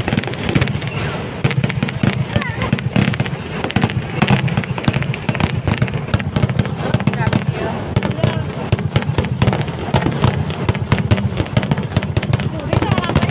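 Fireworks burst with deep booms.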